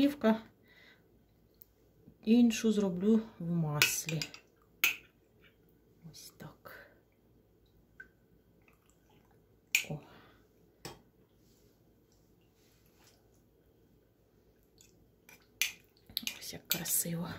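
A metal spoon clinks against a glass jar.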